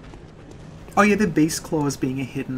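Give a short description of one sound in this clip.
A young woman speaks with animation close to a microphone.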